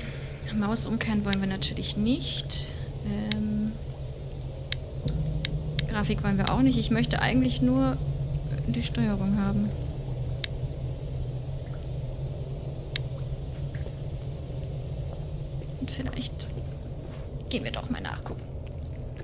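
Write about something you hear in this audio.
A young woman talks casually into a close microphone.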